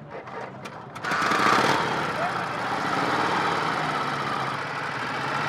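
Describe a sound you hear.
A motorcycle engine starts and idles with a low rumble.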